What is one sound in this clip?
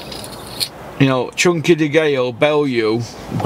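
A middle-aged man speaks close by, calmly.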